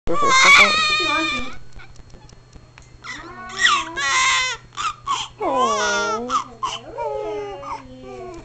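A newborn baby cries loudly close by in sobbing bursts.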